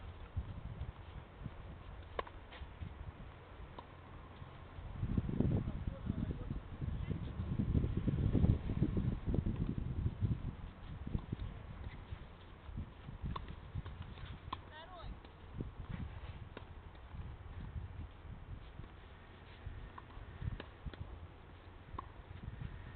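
A tennis ball bounces on the court.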